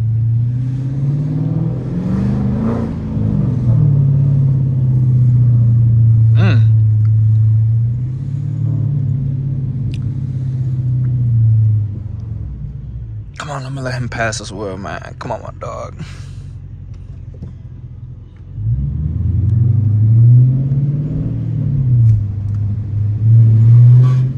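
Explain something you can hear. A car engine rumbles deeply from inside the car and revs up and down.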